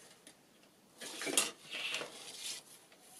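Sheets of paper rustle and slide.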